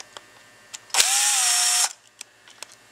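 A power drill whirs briefly.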